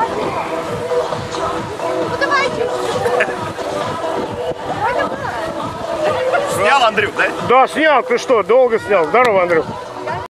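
A group of adult men and women chatter together outdoors.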